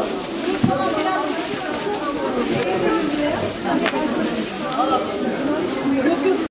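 A crowd of men and women talk over one another nearby.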